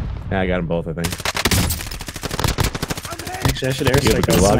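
Rapid rifle gunfire rattles close by.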